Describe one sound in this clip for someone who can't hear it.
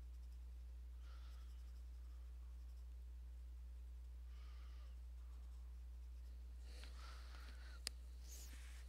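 A marker scratches softly on paper.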